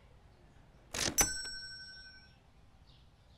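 A cash register chimes loudly.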